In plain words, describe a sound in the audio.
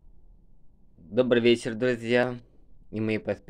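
A man speaks calmly and close to a phone's microphone.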